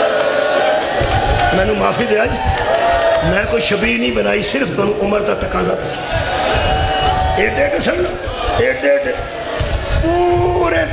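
A crowd of men beats their chests in rhythm.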